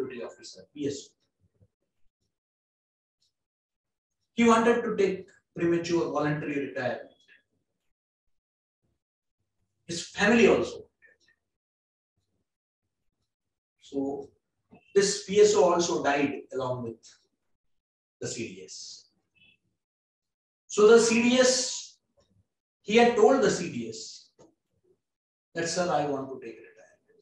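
A middle-aged man speaks calmly into a microphone, pausing often between phrases.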